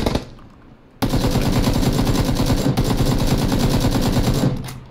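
An automatic rifle fires rapid bursts of shots.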